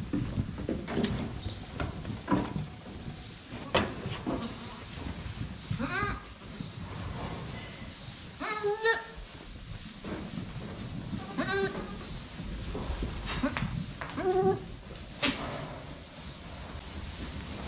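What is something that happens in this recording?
Hooves trample and rustle through straw.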